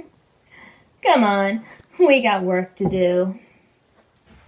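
A teenage girl sings a few drawn-out notes close by.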